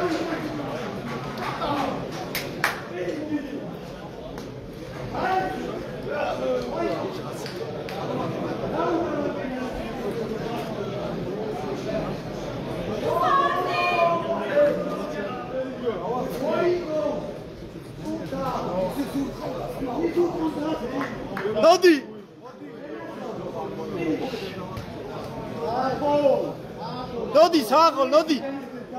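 Men talk and shout over one another nearby in a large, echoing hall.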